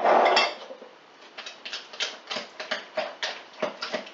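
A utensil beats against the side of a jug.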